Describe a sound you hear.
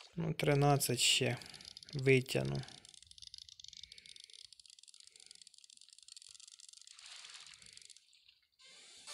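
A fishing reel whirs steadily as line is wound in.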